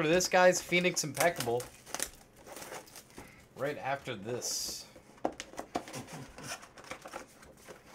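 Plastic wrap rustles as it is pulled off a box.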